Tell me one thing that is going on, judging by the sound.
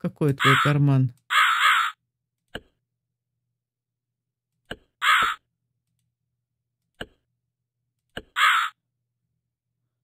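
A lamp's pull switch clicks a few times.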